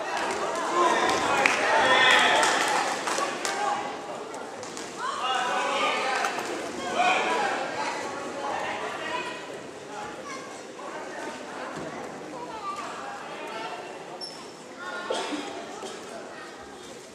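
A crowd cheers and shouts around a boxing ring.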